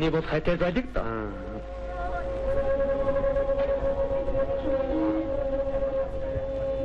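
An elderly man sings a long, drawn-out note.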